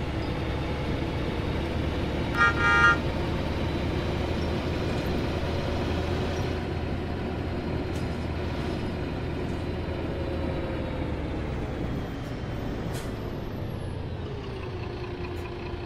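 A diesel city bus drives along a road and slows down.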